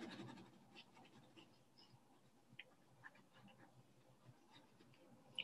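A pencil scratches softly across paper in quick strokes.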